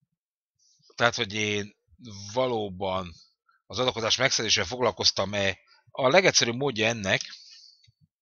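An elderly man speaks with animation into a close microphone.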